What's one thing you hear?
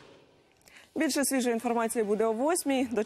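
A woman speaks clearly into a microphone in a calm, even newsreader's voice.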